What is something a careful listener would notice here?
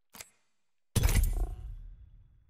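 A game menu button clicks with a short burst of sound.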